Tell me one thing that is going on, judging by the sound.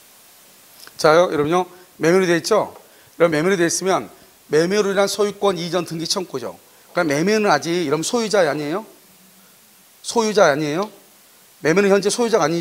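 A man lectures with animation into a close microphone.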